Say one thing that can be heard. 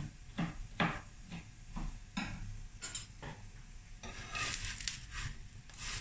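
Food sizzles softly in a hot pan.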